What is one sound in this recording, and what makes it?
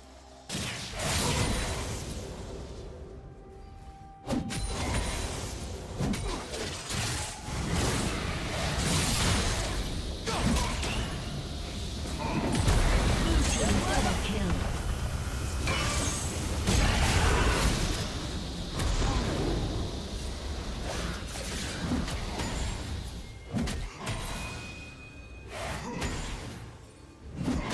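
Magic spells whoosh, blast and crackle in a fast, busy fight.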